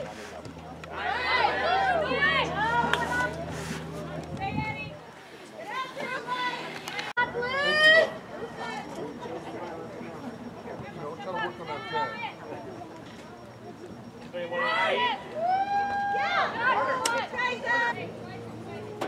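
Young women shout to each other across an open playing field.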